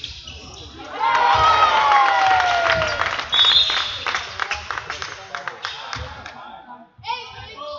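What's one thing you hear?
A crowd of spectators cheers and applauds loudly in an echoing hall.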